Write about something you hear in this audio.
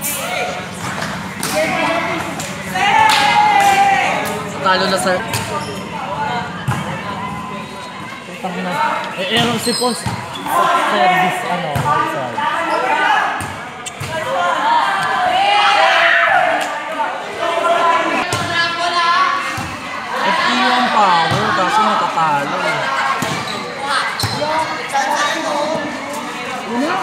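A volleyball is struck by hands.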